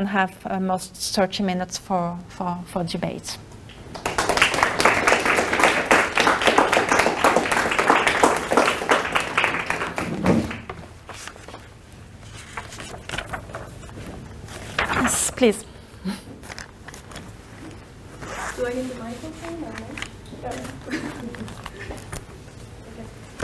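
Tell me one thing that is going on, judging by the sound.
A young woman speaks calmly, heard through a microphone in a room.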